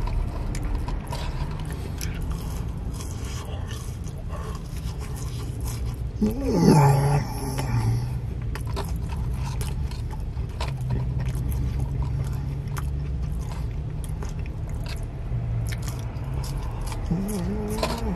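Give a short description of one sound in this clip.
A man chews food with his mouth close to a microphone.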